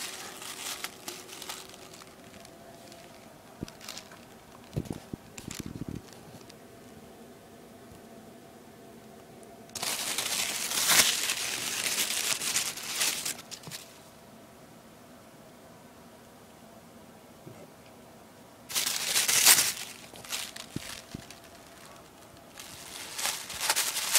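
Tissue paper rustles and crinkles close by in bursts.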